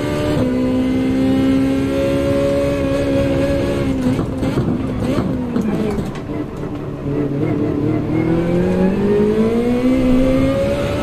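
A race car engine whines at high revs, drops low, then climbs again.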